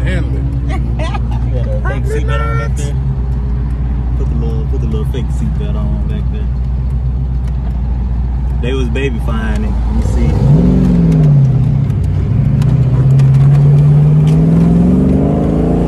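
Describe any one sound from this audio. Wind rumbles past in an open car.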